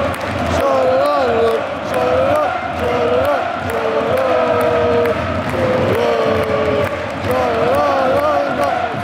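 A large crowd of football supporters chants in unison in a stadium.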